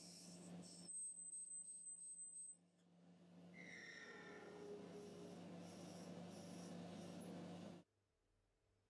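A drill bit cuts into brass with a whirring scrape.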